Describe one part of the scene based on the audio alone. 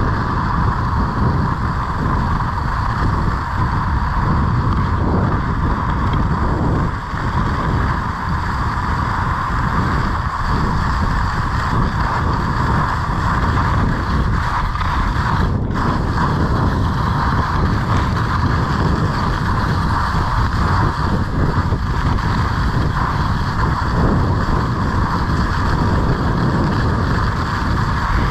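Skis slide and scrape steadily over packed snow.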